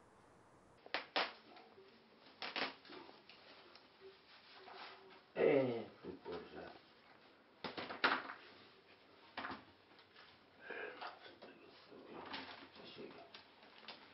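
Potatoes knock and thud as they drop into a wicker basket.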